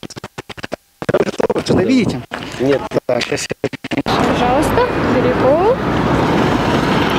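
Young people talk and laugh nearby outdoors.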